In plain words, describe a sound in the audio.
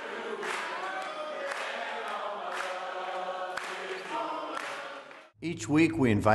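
A crowd claps along in a steady rhythm.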